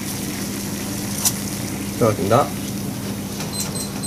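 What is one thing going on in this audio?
Dry pasta drops into boiling water.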